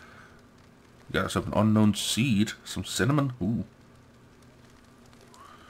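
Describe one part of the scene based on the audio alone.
A bonfire of logs crackles.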